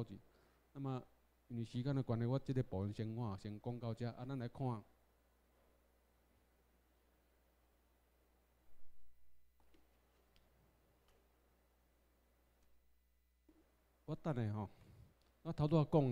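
A man lectures through a microphone, speaking in short bursts with pauses.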